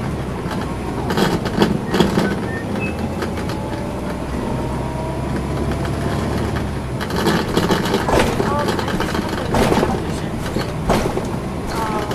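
The bus rattles and clatters over bumps in the road.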